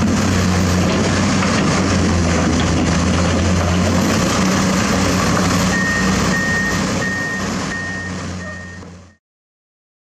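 A diesel hydraulic excavator's engine works under load.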